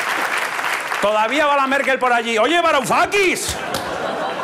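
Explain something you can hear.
A man speaks loudly and theatrically through a microphone and loudspeakers, drawing out his words.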